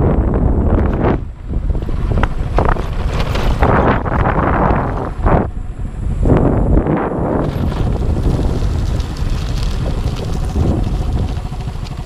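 Wind blows hard outdoors, buffeting in gusts.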